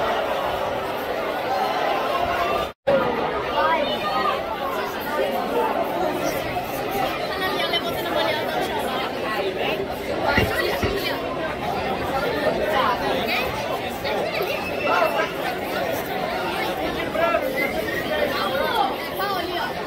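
A crowd of spectators chatters and calls out all around, outdoors.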